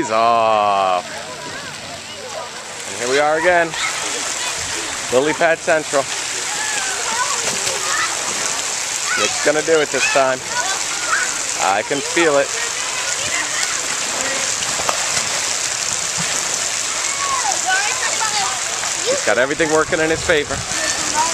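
A crowd of children chatters in the background.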